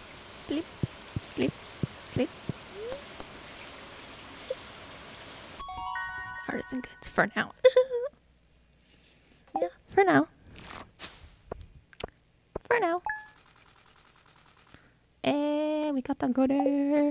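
A video game plays short chiming menu sounds.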